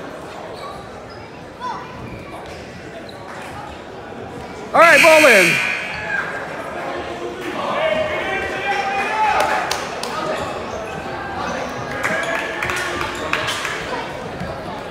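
Spectators chatter in an echoing gym.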